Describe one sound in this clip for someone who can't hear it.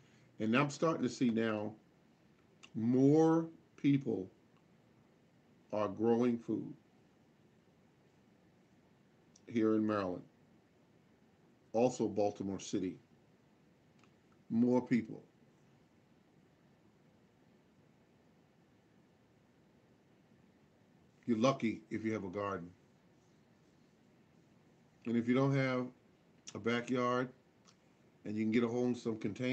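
A middle-aged man speaks calmly and close up, in short phrases with pauses.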